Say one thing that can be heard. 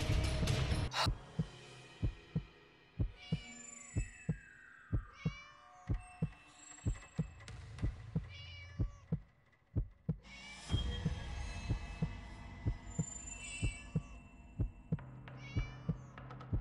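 Footsteps tap steadily on a hard path.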